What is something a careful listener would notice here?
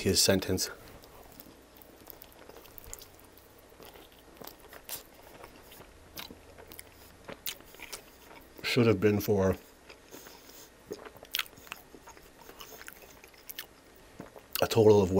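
A man chews food with crunchy, wet mouth sounds close to a microphone.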